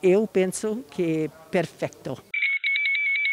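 An elderly woman speaks calmly into a microphone, close by.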